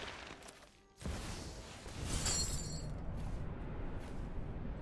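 A magical shimmering sound effect swells and rings.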